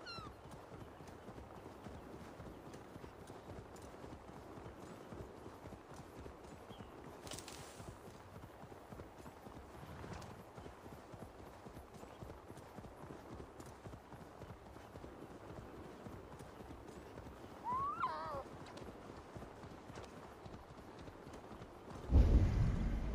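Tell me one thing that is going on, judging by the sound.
A horse gallops over grass with thudding hoofbeats.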